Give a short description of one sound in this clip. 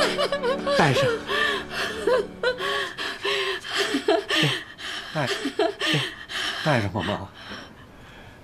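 A middle-aged man speaks warmly and gently close by.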